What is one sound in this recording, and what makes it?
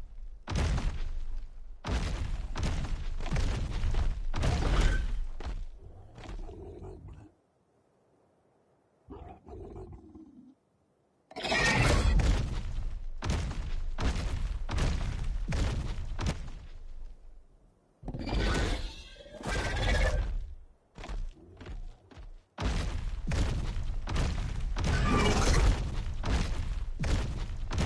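A large creature's heavy footsteps thud on grass.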